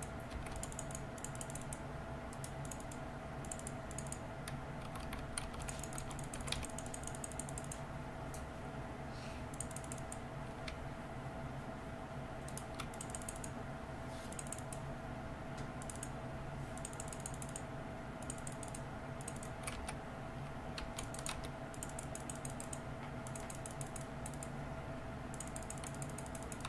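Video game sound effects clatter and chime.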